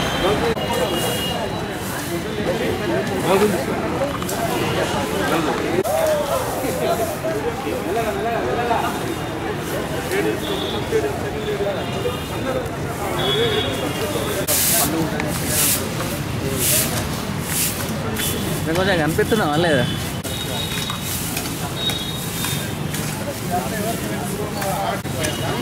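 Brooms sweep and scrape across dry ground outdoors.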